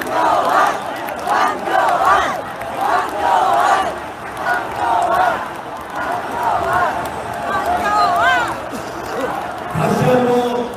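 A large crowd chants and shouts together outdoors.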